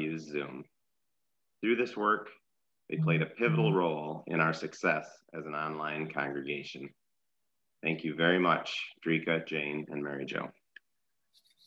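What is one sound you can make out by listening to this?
A middle-aged man talks calmly over an online call.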